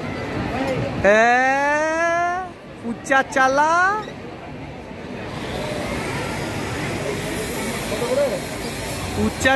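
Children chatter and shout.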